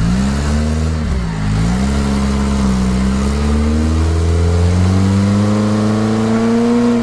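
Tyres churn and splash through thick mud.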